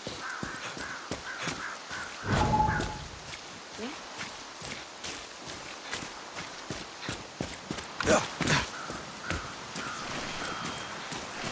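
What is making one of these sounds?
Footsteps rustle through grass and over rocky ground.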